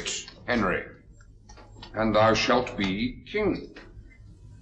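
A middle-aged man speaks forcefully and clearly nearby.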